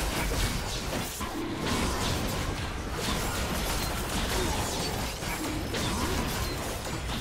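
Fantasy battle effects whoosh and clash as creatures fight.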